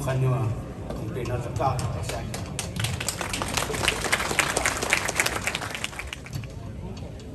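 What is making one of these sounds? An older man speaks into a microphone over loudspeakers.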